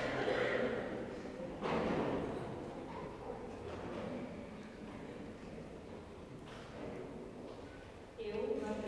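An elderly man speaks calmly in a large echoing hall.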